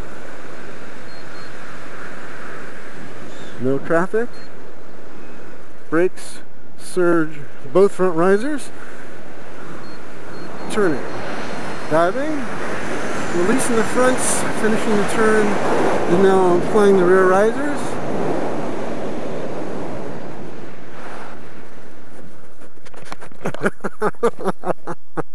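Wind rushes steadily past outdoors high in the air.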